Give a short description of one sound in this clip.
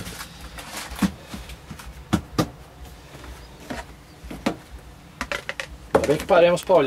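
Cabinet doors and drawers knock and bang shut.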